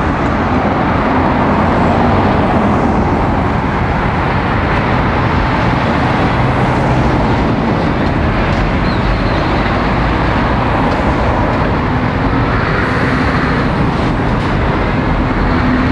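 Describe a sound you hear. Car tyres hiss on a wet road as cars drive by.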